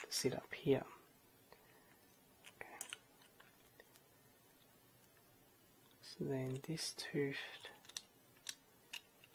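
3D-printed plastic parts click and rattle as they are fitted together by hand.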